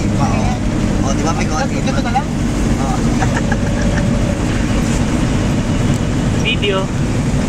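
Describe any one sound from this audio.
Young men talk and laugh close by.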